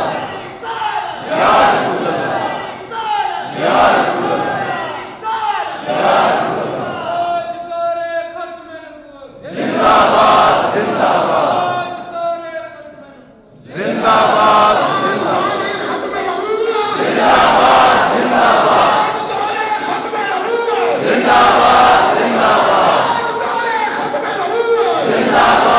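A man preaches loudly and passionately through a loudspeaker in a large echoing hall.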